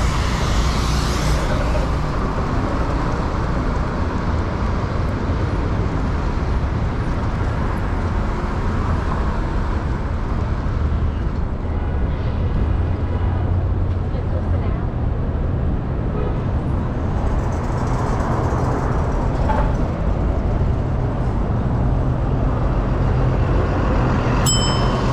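Wind rumbles loudly across a moving bicycle outdoors.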